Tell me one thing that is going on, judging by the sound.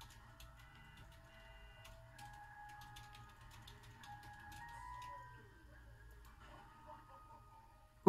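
Faint electronic game music plays quietly from a television speaker.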